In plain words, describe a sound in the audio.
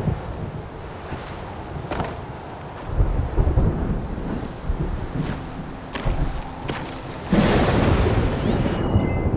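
Strong wind blows and roars in gusts.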